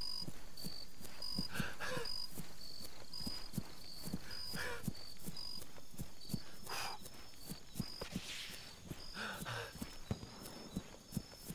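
Footsteps walk through grass and undergrowth.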